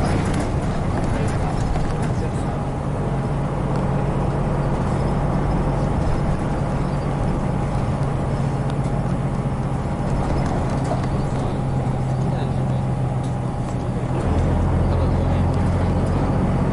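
Tyres rumble on the road under a moving bus.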